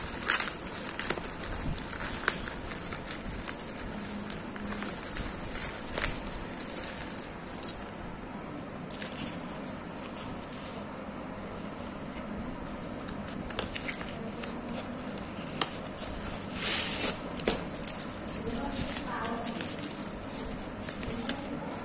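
Plastic bubble wrap crinkles and rustles in handling hands.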